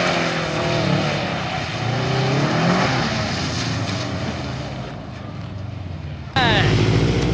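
Tyres swish across wet pavement.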